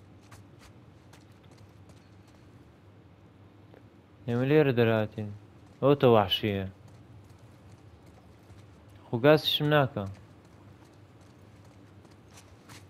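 Footsteps walk softly on hard ground.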